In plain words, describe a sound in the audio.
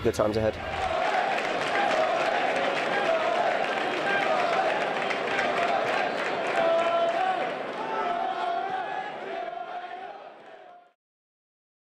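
A crowd cheers and chants loudly in a stadium.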